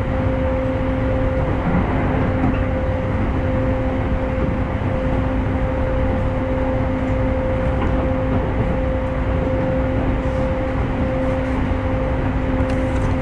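A train's motor hums at a constant pitch.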